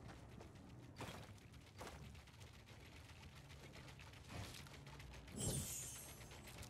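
Building pieces snap into place with short knocks.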